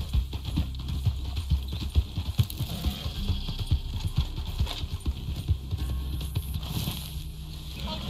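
A horse gallops with heavy, quick hoofbeats on grass.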